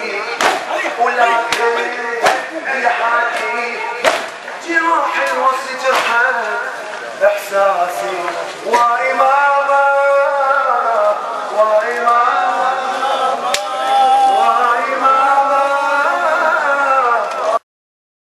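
A crowd of men chants along.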